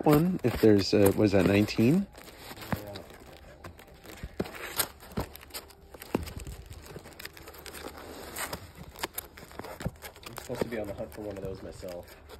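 A hand flips through plastic-bagged comic books with soft rustling and ticking.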